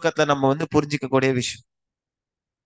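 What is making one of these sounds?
A young man speaks calmly into a headset microphone, heard through an online call.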